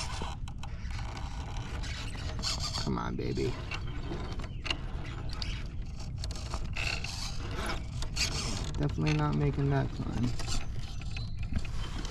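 Rubber tyres scrape and grind against rock.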